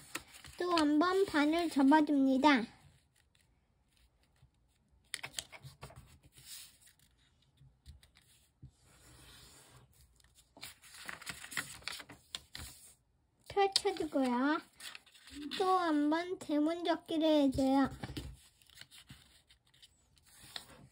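Paper rustles and creases as it is folded by hand.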